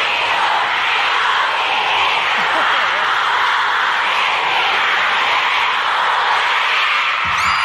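A large crowd of fans screams and cheers.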